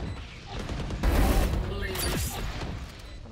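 A game ability bursts with a loud rushing hiss.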